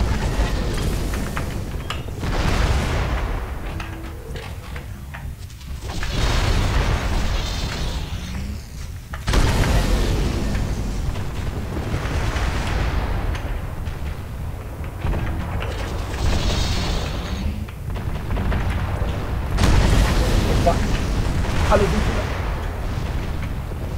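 Cannons and lasers fire in bursts with loud blasts.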